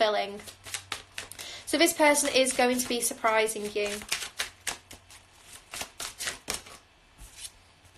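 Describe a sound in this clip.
Playing cards riffle and tap as they are shuffled.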